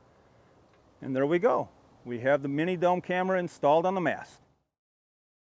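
A middle-aged man speaks calmly and clearly into a nearby microphone.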